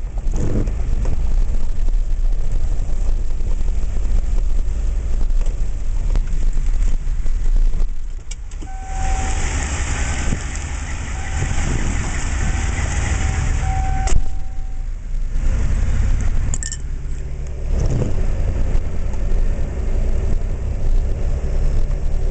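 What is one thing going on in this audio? A car rumbles steadily along a road.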